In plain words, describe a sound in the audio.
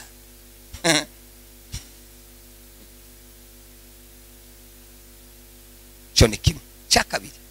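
A man speaks through a microphone with animation, heard over loudspeakers in an echoing room.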